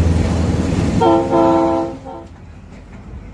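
A locomotive horn blares loudly twice.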